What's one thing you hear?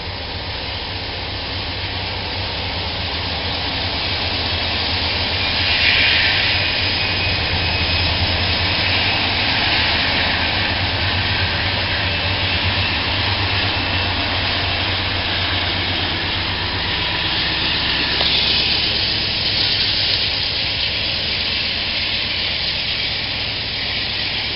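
Diesel locomotives rumble past close by.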